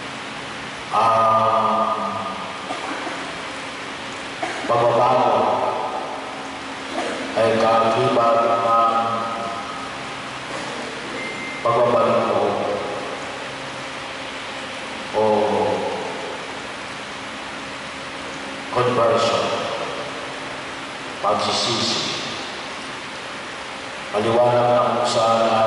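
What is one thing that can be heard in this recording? A middle-aged man chants in phrases through a microphone and loudspeakers, echoing in a large hall.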